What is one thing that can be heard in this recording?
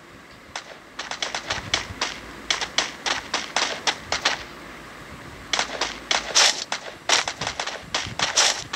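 Footsteps of a game character run quickly over hard ground.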